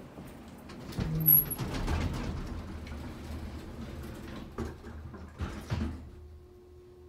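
An elevator motor hums as the car moves.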